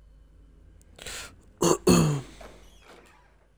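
Wooden cabinet doors creak open.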